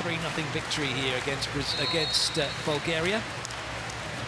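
A large crowd chants and cheers loudly in an echoing arena.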